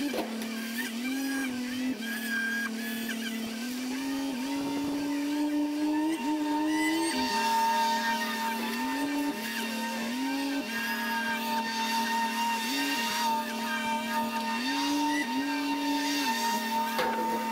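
A hydraulic arm whines, its pitch rising and falling as it moves.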